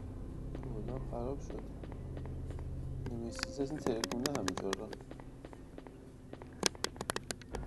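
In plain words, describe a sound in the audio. Footsteps tap steadily on a hard stone floor.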